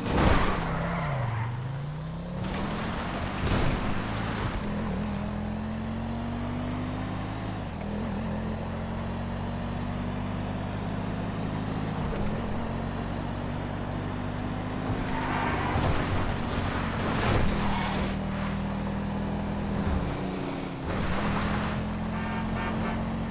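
A car engine hums steadily and rises and falls in pitch as the car speeds up and shifts gears.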